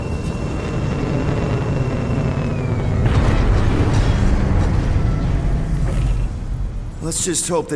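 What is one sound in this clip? A spaceship's engines roar with a deep, steady rumble.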